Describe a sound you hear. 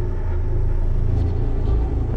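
Sparks crackle and fizz.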